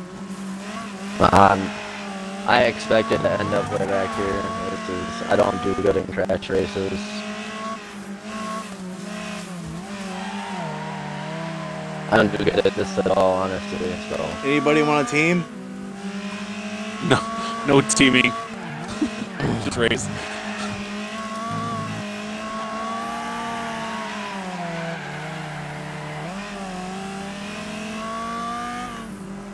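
A car engine roars and whines steadily as it races.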